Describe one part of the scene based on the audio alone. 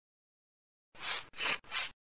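A cartoon dog snores softly in short breaths.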